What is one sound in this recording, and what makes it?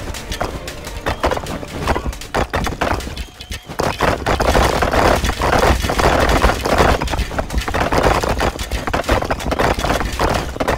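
Game battle sounds of clashing weapons and hits play rapidly.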